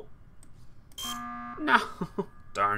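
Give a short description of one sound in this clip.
A game's emergency alarm blares.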